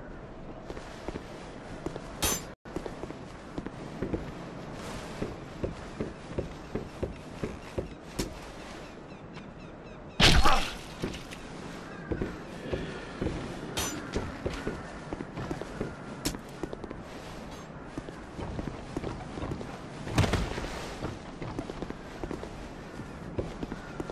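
A game character's footsteps and armor clatter steadily over stone and wood.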